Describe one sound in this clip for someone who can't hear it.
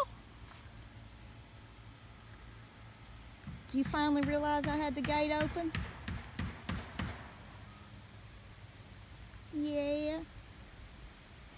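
A horse tears and chews grass close by.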